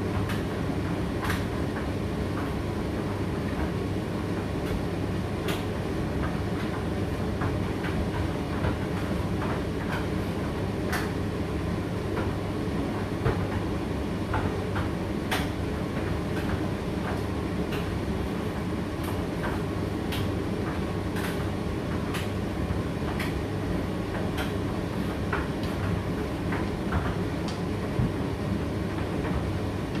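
Clothes tumble and knock inside a tumble dryer's drum.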